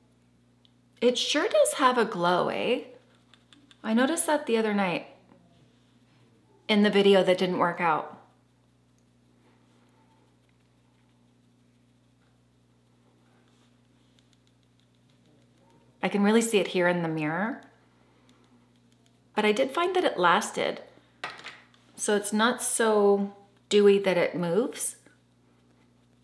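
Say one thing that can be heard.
A woman speaks calmly and closely into a microphone, in short phrases with pauses.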